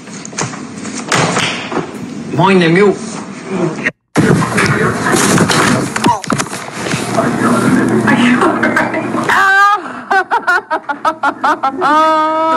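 A young man talks and laughs close to a phone microphone.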